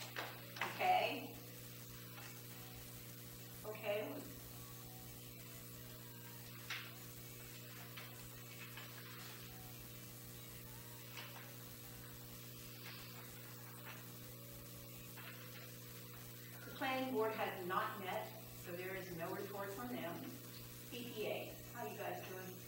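Adults speak in turn around a meeting table, heard through a distant room microphone.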